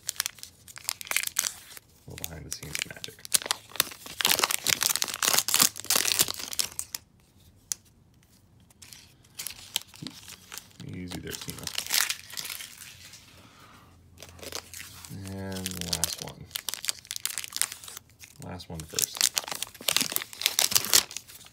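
A plastic foil wrapper crinkles and rustles as hands tear it open.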